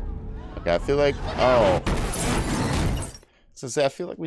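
A car crashes with a loud, roaring impact.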